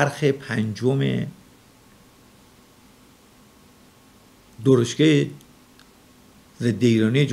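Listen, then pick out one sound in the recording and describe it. A middle-aged man speaks calmly and deliberately into a close microphone, with long pauses.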